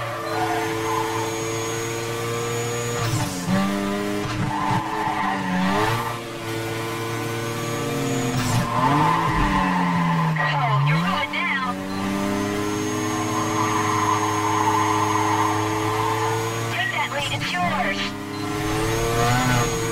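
A racing car engine roars at high revs, its pitch dropping and rising through gear changes.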